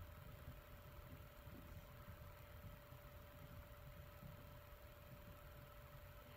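A small animal rustles softly in dry bedding.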